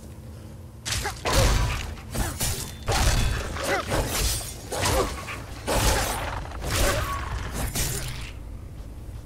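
Wolves snarl and yelp in a fight.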